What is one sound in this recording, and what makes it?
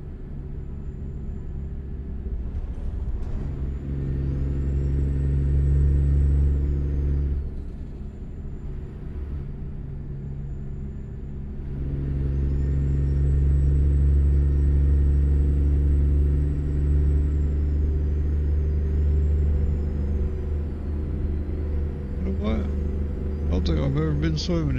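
A truck's diesel engine rumbles steadily, rising and falling as it accelerates and eases off.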